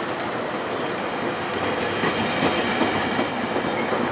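A train door slides shut.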